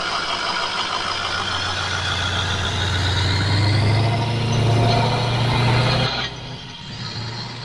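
A pickup truck engine rumbles and revs up close by.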